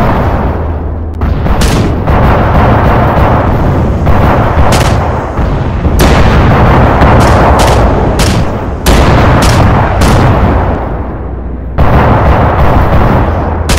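Twin cannons fire in rapid, roaring bursts.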